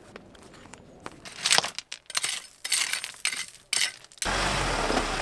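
Fingers scrape through loose gravel.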